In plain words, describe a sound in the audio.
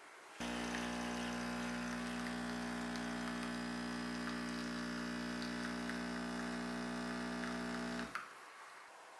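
A coffee machine hums steadily as it dispenses.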